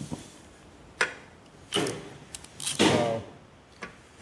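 A hammer taps a metal punch against metal.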